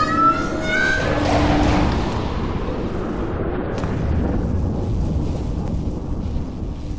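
A loud rushing blast roars and then slowly fades.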